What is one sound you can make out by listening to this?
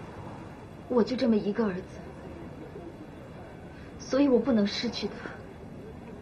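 A young girl speaks quietly, close by.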